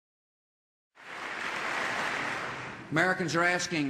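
A large crowd applauds in a big hall.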